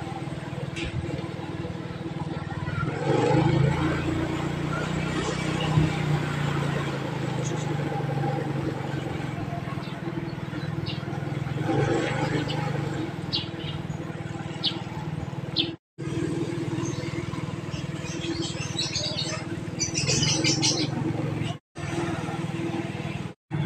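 A motorcycle engine hums as the motorcycle cruises along a street.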